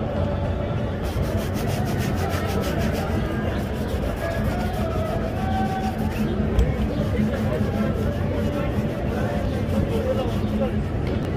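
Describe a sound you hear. A cloth rubs briskly against a leather shoe.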